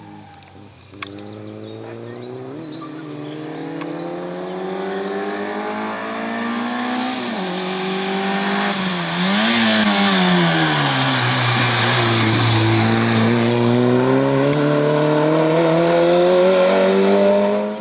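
A rally car engine roars closer, revving hard and rising in pitch through gear changes.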